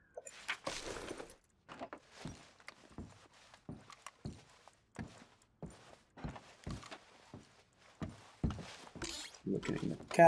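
Footsteps thud softly and evenly on a carpeted floor.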